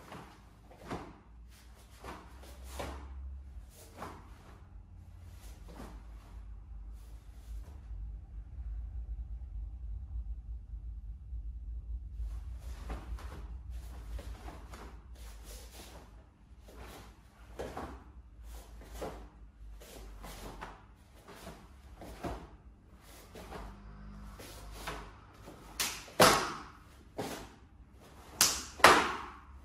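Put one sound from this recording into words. A stiff uniform snaps sharply with quick punches and kicks.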